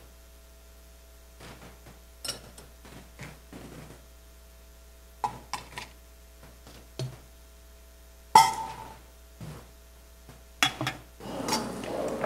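Objects clink softly on a table.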